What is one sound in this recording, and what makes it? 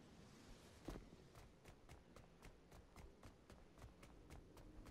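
Quick footsteps tap on stone.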